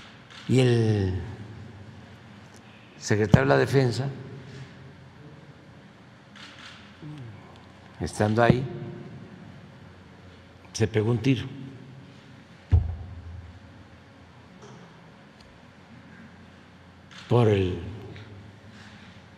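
An elderly man speaks slowly into a microphone, in short bursts with long pauses, in a large echoing room.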